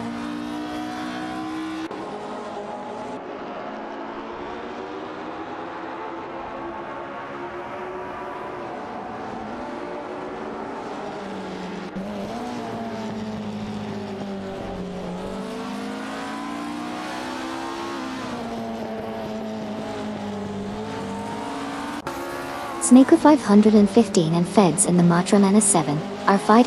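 Racing car engines drone loudly, rising and falling in pitch as gears change.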